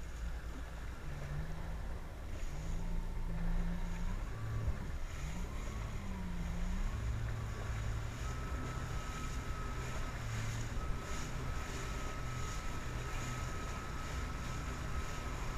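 A jet ski engine drones close by, rising and falling in pitch.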